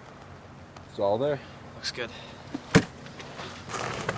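A man speaks sharply outdoors.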